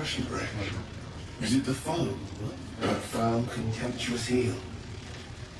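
A man speaks in a slow, measured voice.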